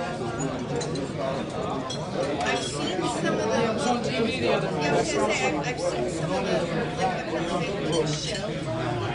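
A crowd of men and women chatters at once in a large room.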